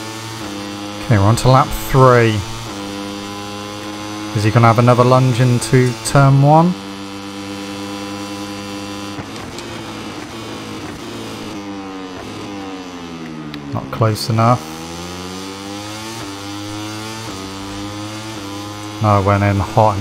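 A motorcycle engine revs sharply up and down while braking into corners.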